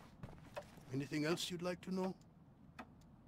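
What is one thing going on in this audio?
A young man asks a question calmly.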